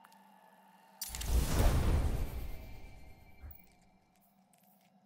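A game's upgrade effect swells into a deep rushing roar and then fades away.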